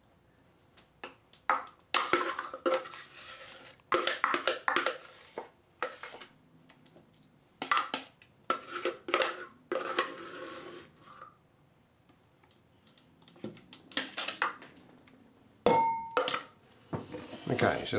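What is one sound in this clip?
A spatula scrapes against a glass dish.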